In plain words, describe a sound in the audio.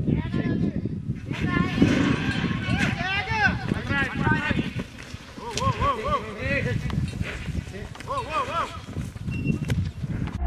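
Men shout and cheer excitedly outdoors.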